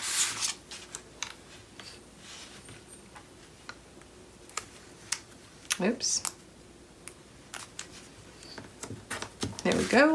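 Paper rustles and crinkles as hands fold and press a strip.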